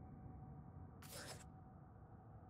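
A short menu click sounds.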